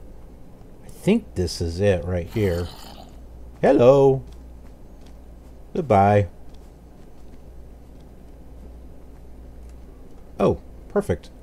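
An adult man speaks calmly in short bursts through a headset microphone.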